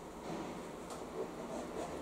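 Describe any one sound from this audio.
Water pours from a tap into a sink.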